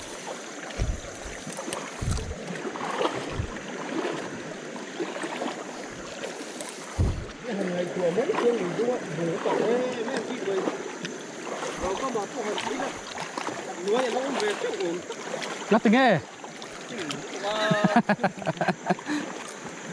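Water splashes as a man wades through a shallow river.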